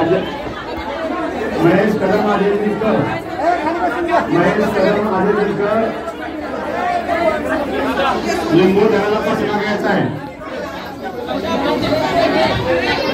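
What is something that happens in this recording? A crowd of men and women chatter loudly all around.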